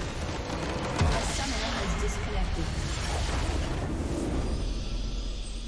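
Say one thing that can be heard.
A large magical blast booms and rumbles away.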